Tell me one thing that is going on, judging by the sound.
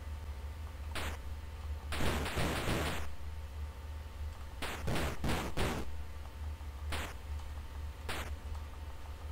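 Short electronic game blips and zaps sound now and then.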